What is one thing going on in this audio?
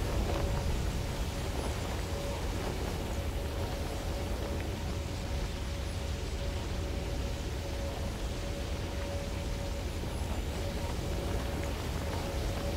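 Wind rushes steadily past a gliding figure.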